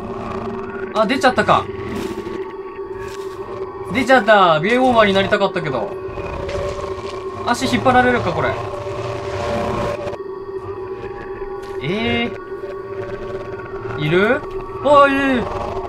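A young man talks animatedly into a microphone, close by.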